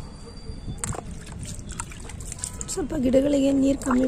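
Water splashes as a hand dips into a bowl.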